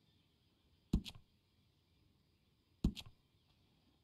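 A sharp menu click sounds as an option is picked.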